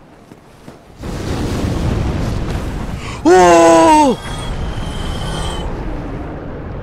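A huge burst of fire roars and crackles.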